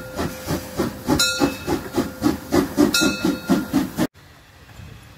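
A steam locomotive chuffs loudly in a fast, steady rhythm as it approaches.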